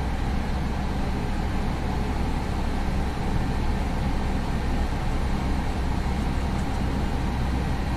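Jet engines hum steadily while an airliner taxis.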